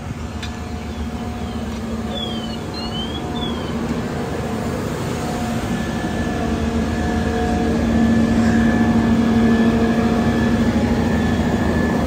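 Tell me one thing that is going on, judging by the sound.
A fire engine's motor rumbles steadily close by.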